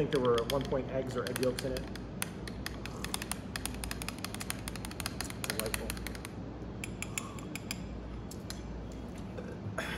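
A spoon clinks repeatedly against a glass.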